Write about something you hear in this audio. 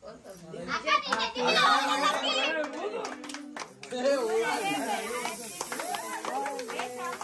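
Several men clap their hands in rhythm.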